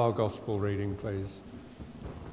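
An elderly man speaks calmly into a microphone in a reverberant room.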